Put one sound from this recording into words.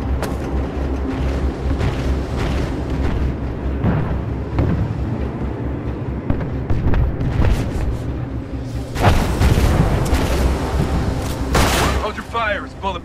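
A low engine rumble drones steadily.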